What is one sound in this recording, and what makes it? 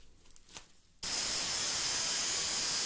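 An angle grinder whines loudly as it cuts metal.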